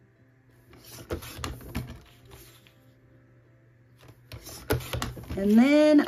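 A paper trimmer blade slides and slices through paper.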